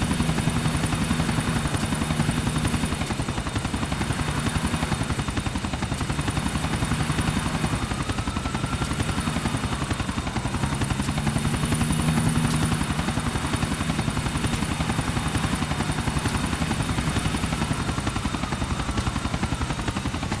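Helicopter rotor blades chop steadily and loudly overhead.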